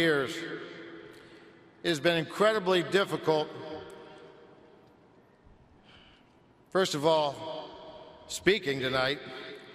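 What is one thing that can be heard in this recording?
A middle-aged man speaks calmly and slowly through a microphone in a large echoing hall.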